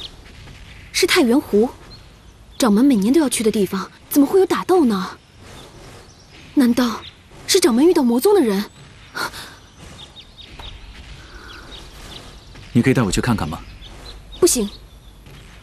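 A young woman speaks with worry, close by.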